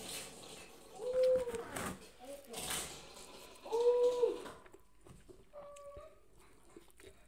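A woman hums with delight while eating.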